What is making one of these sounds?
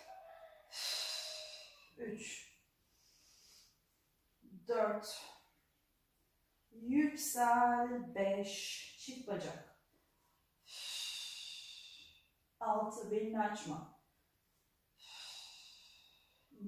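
A young woman exhales hard with effort.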